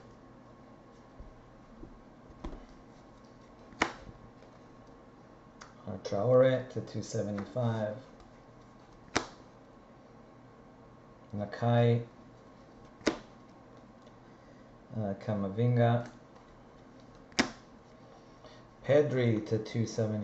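Trading cards flick and rustle in hands.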